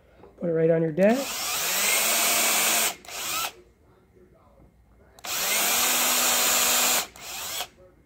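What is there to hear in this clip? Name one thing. A cordless drill whirs loudly in two short bursts, boring into wood.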